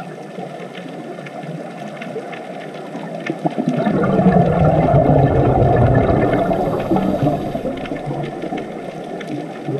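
Scuba air bubbles gurgle and rumble underwater, growing loud in the middle.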